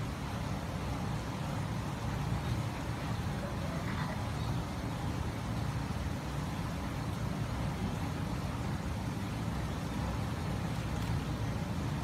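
Wind buffets the microphone outdoors with a steady low rumble.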